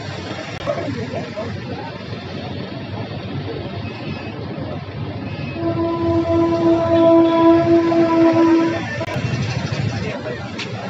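A crowd of men murmur and talk nearby outdoors.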